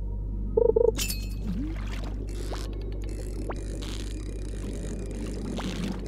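A fishing reel whirs and clicks as a fish is reeled in.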